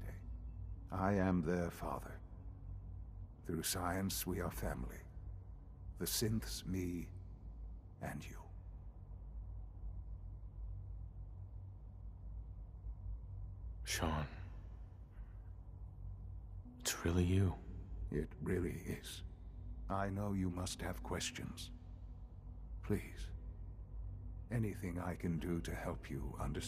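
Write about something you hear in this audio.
An older man speaks calmly and slowly.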